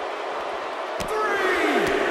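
A body slams hard onto the floor.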